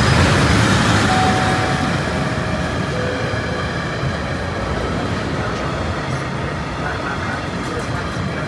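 A freight train rumbles past close by, its wheels clattering steadily on the rails.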